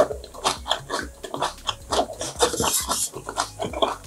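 Chopsticks click against a dish.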